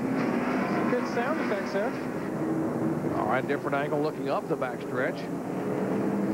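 Tyres squeal sharply as cars spin out.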